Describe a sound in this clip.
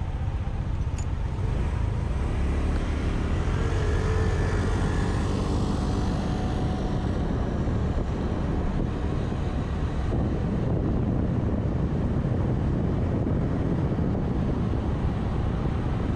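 A scooter engine hums steadily up close.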